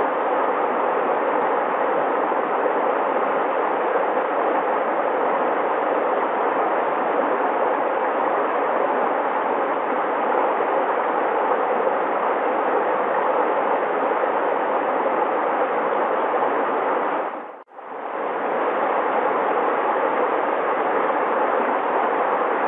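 A shallow stream rushes and babbles steadily over stones.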